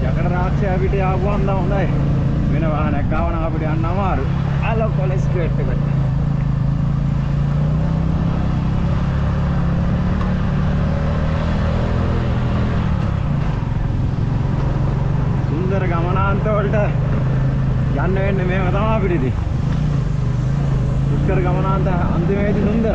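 Tyres crunch over a dirt track.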